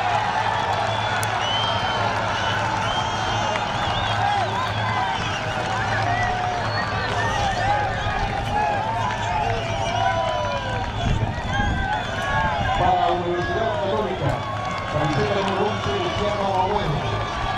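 Young men shout in celebration on an open field.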